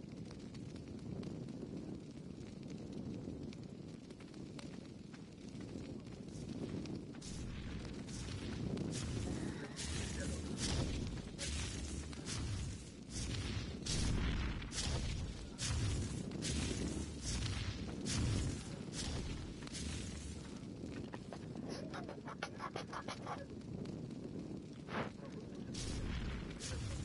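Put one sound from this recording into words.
A torch fire crackles steadily.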